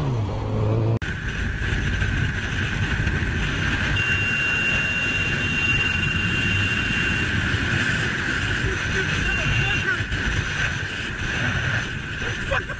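Wind roars loudly past a speeding motorcycle.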